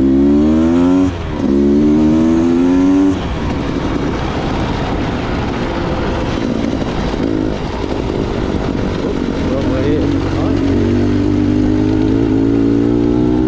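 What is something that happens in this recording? A motorbike engine revs loudly, rising and falling as gears change.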